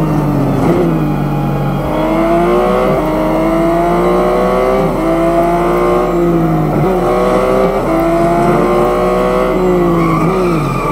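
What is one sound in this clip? A racing car engine roars at high revs, rising in pitch and dropping sharply with each gear change.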